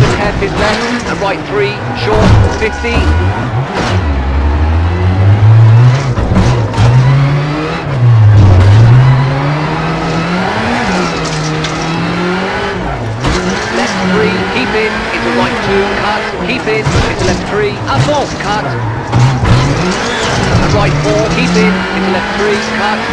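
A rally car engine revs hard, rising and falling as gears change.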